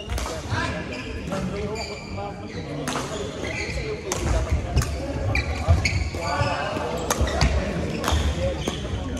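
Shuttlecocks are struck with sharp racket pops in a large echoing hall.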